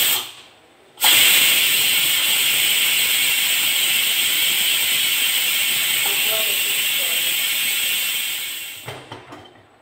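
A pressure cooker hisses loudly as steam escapes.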